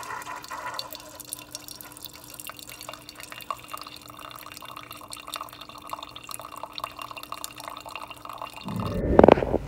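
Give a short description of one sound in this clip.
A coffee machine hums steadily.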